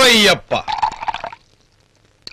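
Liquid is poured into a glass.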